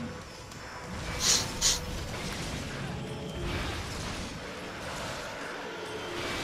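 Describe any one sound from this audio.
A blade slashes and strikes with sharp hits.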